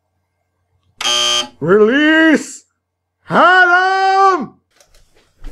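A young man shouts loudly in long drawn-out cries.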